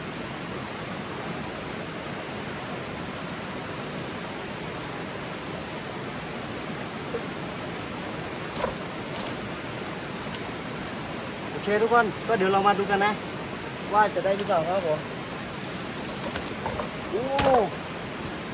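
A stream babbles steadily over rocks nearby.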